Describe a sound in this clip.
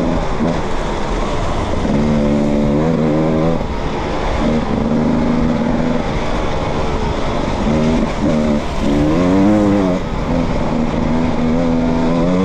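A motorbike engine runs close by, revving up and down.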